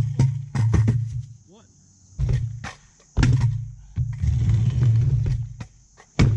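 A scooter clatters sharply against concrete.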